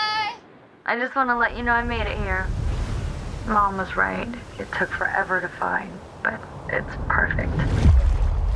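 A young woman speaks softly and warmly.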